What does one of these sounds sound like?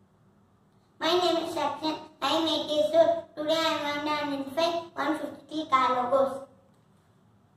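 A young boy speaks clearly and eagerly, close by.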